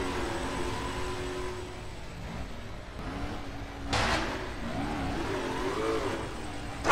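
A truck engine hums and revs.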